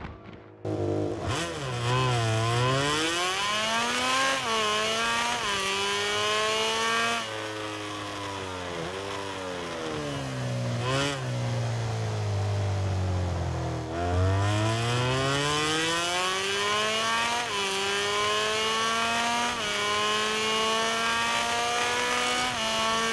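A racing motorcycle engine revs high, rising through the gears and dropping as it slows for a bend.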